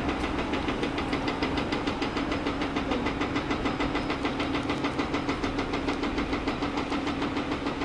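Water gushes and splashes loudly from a pipe outlet.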